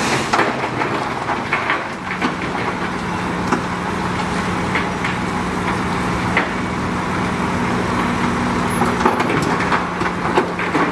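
Rocks clatter and knock in a truck's bed as it jolts.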